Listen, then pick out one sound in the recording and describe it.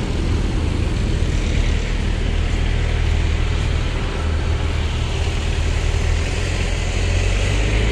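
Traffic rumbles along a street nearby.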